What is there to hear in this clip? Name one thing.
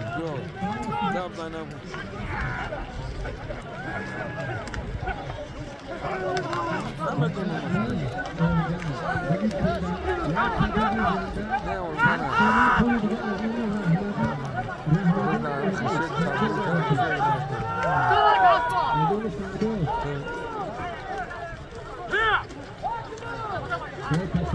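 A crowd of men shouts and calls out nearby, outdoors.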